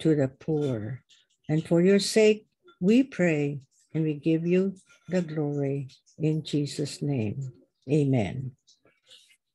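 A man speaks steadily over an online call.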